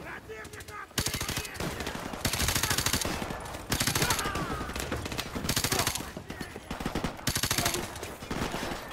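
Rapid automatic gunfire rattles in short bursts.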